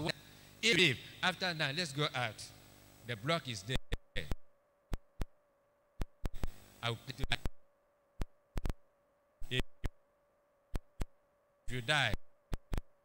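A man speaks with animation through a microphone.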